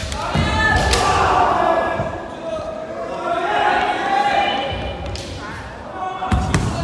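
Fighters shout loudly in an echoing hall.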